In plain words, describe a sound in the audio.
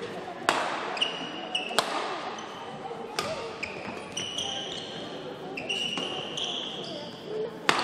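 Shoes squeak sharply on a hard court floor.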